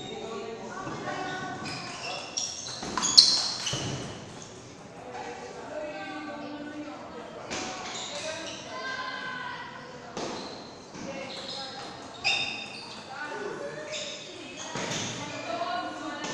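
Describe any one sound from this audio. A table tennis ball clicks against paddles and bounces on a table.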